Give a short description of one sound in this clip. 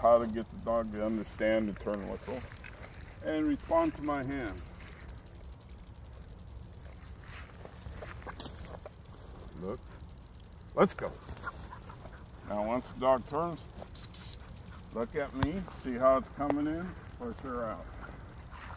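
An elderly man talks calmly to a dog nearby.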